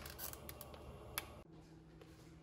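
A plastic noodle packet crinkles.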